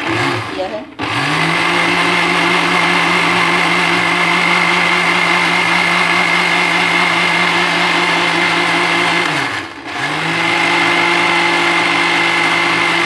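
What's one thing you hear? A blender motor whirs loudly and steadily, briefly stops, then starts again.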